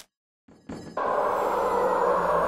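A furnace fire roars steadily.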